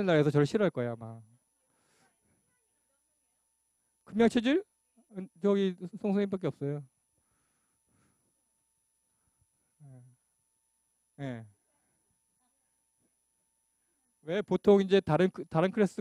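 A middle-aged man lectures into a microphone in short bursts with pauses.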